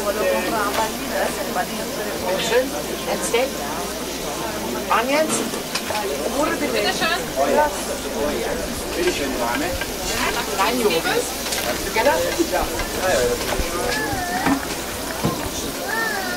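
Metal tongs clink against trays.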